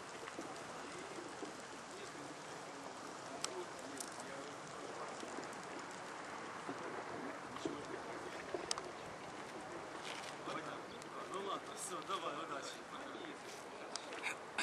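A boat engine hums steadily across the water.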